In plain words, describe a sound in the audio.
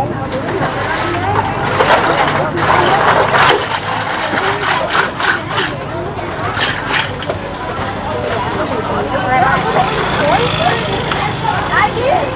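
Shells clatter and rattle against each other in a plastic basket.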